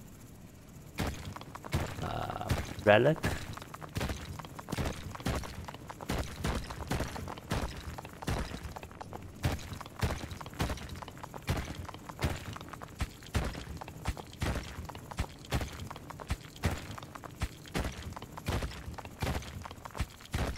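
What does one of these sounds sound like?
Quick crunching digging knocks repeat in a steady rhythm.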